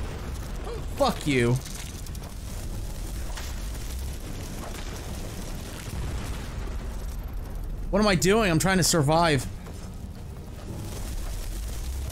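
Fire spells roar and crackle in bursts.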